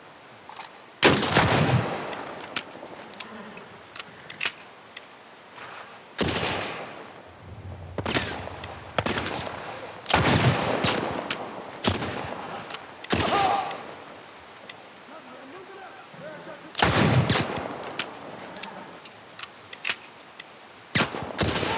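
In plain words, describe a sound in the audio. Loud gunshots ring out and echo outdoors.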